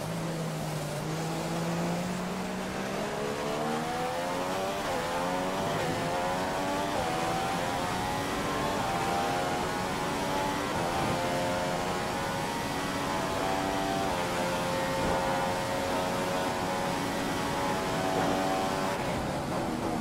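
A Formula One car engine in a racing game revs high, accelerating up through the gears.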